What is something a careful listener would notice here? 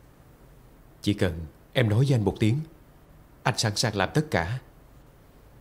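A young man speaks seriously and close by.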